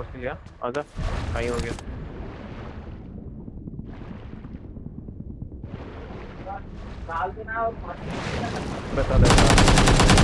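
Water swishes and bubbles as a swimmer strokes underwater.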